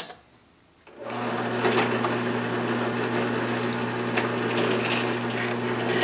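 A drill press motor starts and runs with a steady hum.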